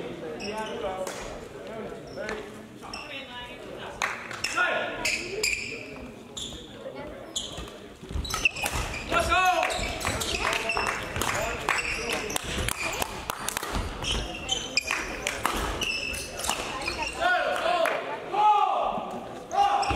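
Badminton rackets strike a shuttlecock with sharp pops in a large echoing hall.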